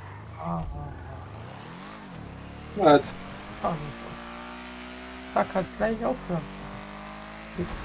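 A car engine revs and hums as the car speeds up.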